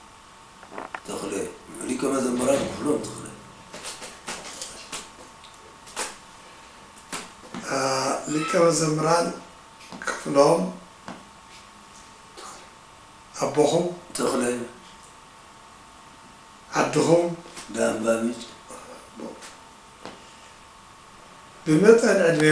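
An elderly man speaks calmly and slowly, close by, with pauses.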